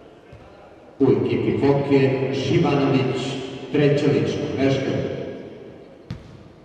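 A crowd cheers loudly in an echoing hall.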